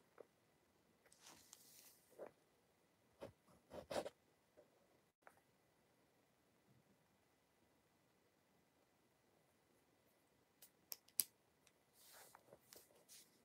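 A teenage boy breathes softly close by.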